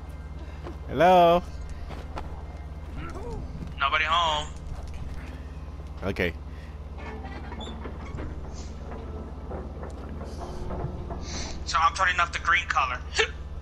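Small cartoon characters squeak and chirp in short high cries.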